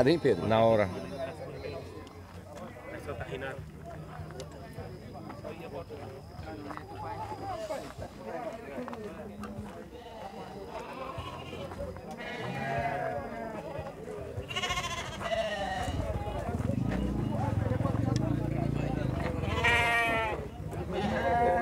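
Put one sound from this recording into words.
Several men talk at once in a crowd outdoors.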